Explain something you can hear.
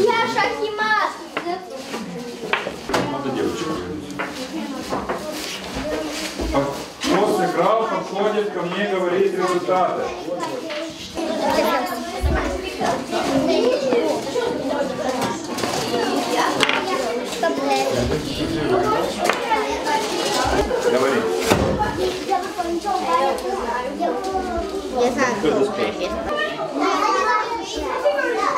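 Children chatter and murmur around a room.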